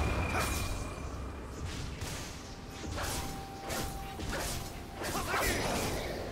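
Magic blasts and sword strikes crash in quick bursts during a video game battle.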